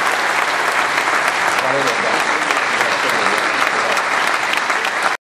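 An audience applauds steadily in a large echoing hall.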